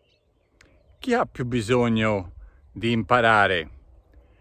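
A middle-aged man speaks close to the microphone with animation.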